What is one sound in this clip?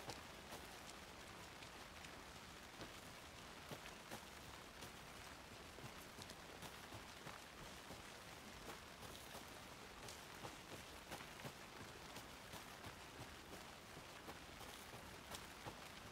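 Footsteps crunch on a leafy forest path at a brisk pace.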